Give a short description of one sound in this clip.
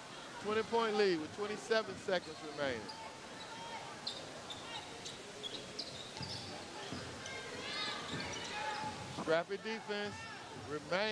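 Sneakers squeak sharply.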